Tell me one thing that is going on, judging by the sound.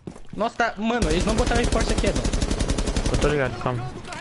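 A rifle fires rapid shots in quick succession.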